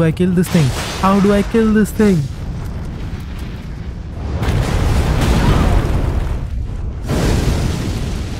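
Fire roars loudly.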